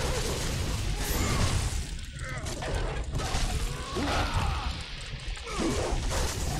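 Chained blades whoosh through the air.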